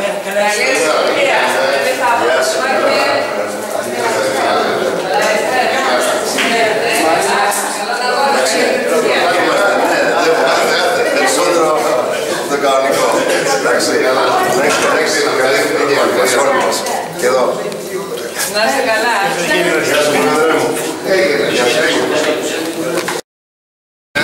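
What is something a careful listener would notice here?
Several men and women talk and greet each other at once, close by, in a lively crowd.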